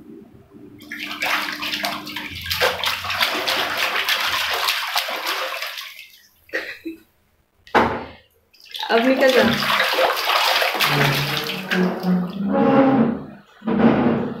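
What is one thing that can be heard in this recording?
Water splashes as a baby slaps it with both hands.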